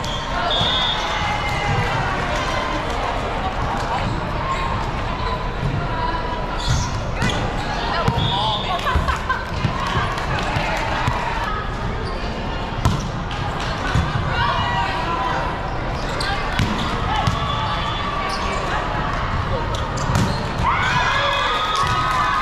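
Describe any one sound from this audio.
A crowd murmurs in an echoing hall.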